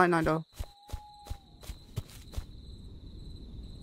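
Footsteps crunch slowly through grass.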